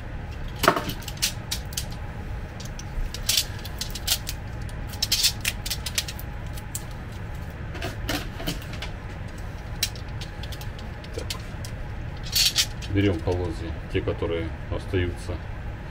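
Metal drawer runners click and clatter as they are handled.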